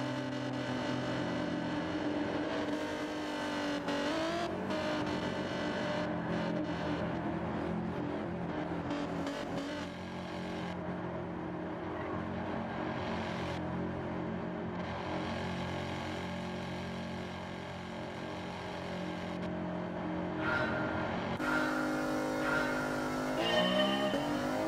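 Racing car engines roar and whine as cars speed around a track.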